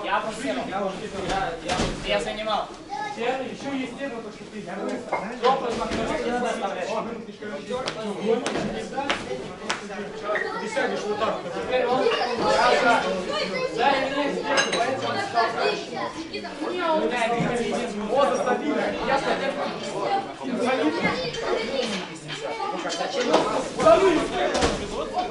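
Many young men talk and call out at once in an echoing hall.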